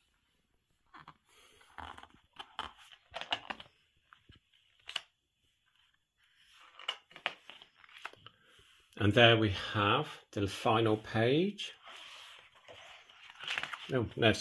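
Stiff book pages rustle and flip as they are turned by hand.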